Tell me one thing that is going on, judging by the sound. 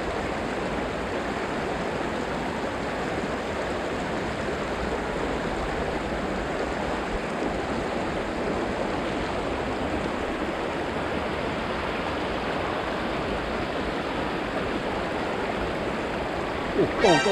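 A shallow river babbles and gurgles steadily over rocks close by.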